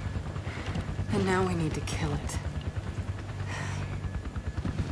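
A young woman answers calmly.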